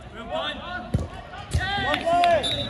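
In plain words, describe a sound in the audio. A football thuds off a kick.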